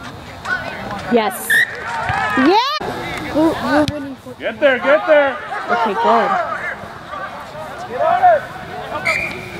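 A crowd of young men shouts during play outdoors.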